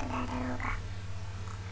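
A young man speaks briefly into a headset microphone.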